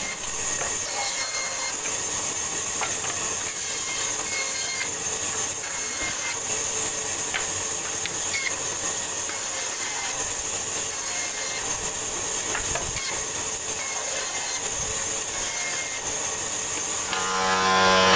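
A band saw whirs steadily as it cuts through wood.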